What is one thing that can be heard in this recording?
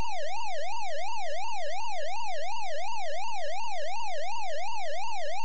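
A game's electronic siren warbles up and down steadily and quickly.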